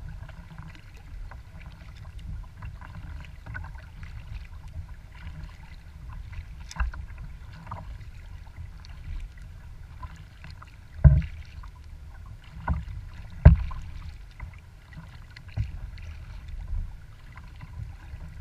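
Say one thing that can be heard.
Small waves lap and splash against a kayak's hull.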